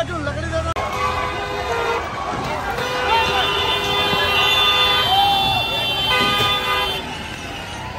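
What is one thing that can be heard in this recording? Car horns honk in traffic.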